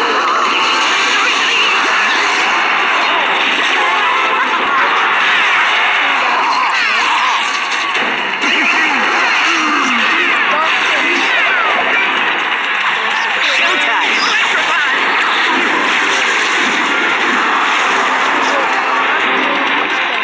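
A young boy talks excitedly close to a microphone.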